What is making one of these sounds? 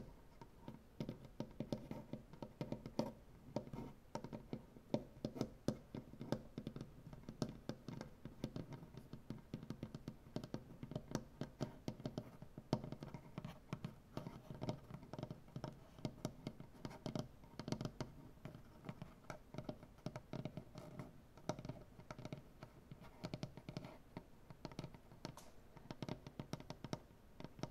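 Fingernails tap and scratch rapidly on a wooden tabletop, close by.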